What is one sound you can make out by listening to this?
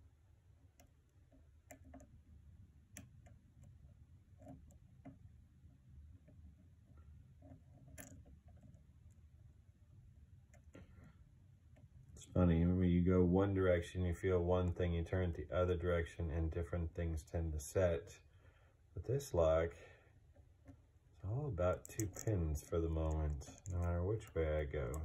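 Small metal picks click and scrape softly inside a lock.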